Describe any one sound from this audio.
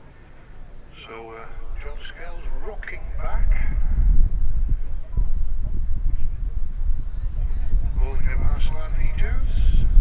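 Men call out to each other across the field.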